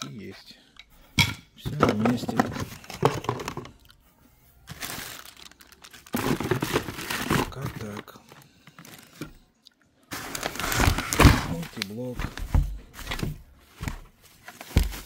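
Plastic wrap crinkles and rustles close by.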